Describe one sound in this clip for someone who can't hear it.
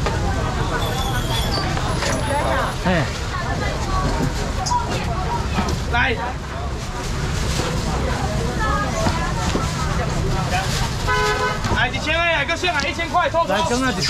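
Plastic bags rustle and crinkle.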